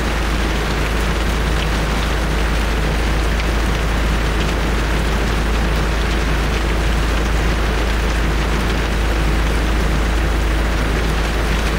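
An off-road vehicle's engine rumbles as it drives slowly through mud.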